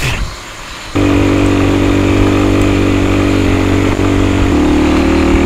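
A motorcycle engine runs with a steady low rumble.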